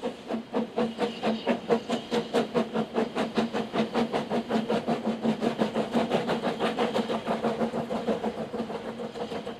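A river rushes over rocks.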